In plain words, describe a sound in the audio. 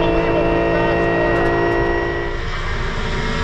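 A race car engine roars loudly at high revs, heard from inside the car.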